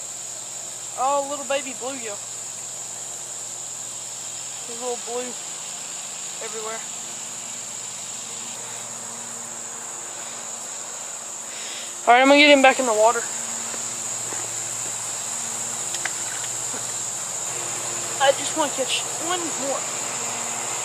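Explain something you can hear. A young man talks casually outdoors, close by.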